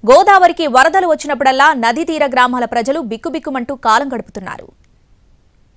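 A young woman speaks steadily and clearly into a microphone, reading out.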